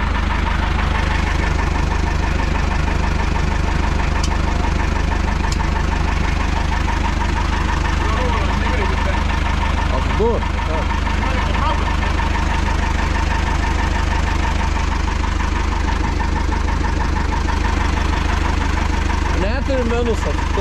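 A plough blade scrapes through snow on the road.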